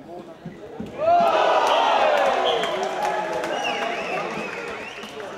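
Spectators nearby cheer and call out.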